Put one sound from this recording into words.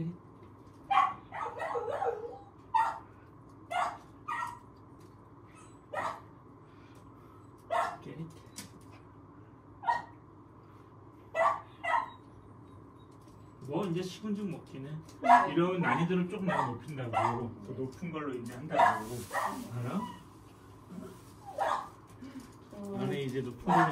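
A small dog yaps in short, sharp bursts.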